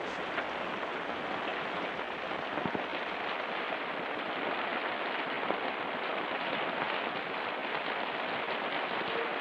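A stiff paper card rustles softly between fingers.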